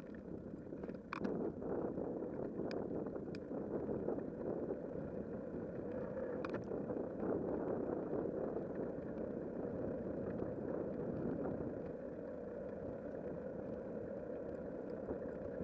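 Wind rumbles steadily against a moving bicycle.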